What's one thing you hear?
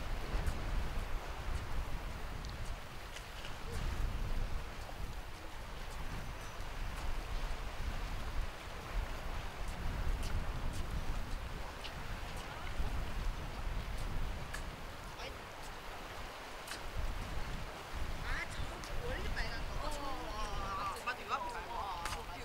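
Sea water gently laps against rocks.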